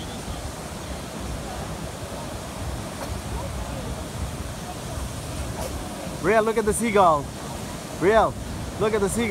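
Surf crashes and rushes steadily onto the shore.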